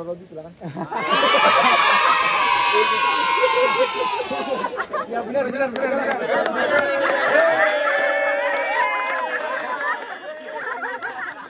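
A group of young men chant and sing loudly together outdoors.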